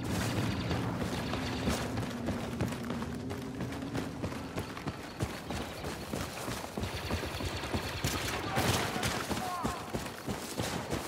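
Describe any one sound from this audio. Footsteps crunch over a forest floor.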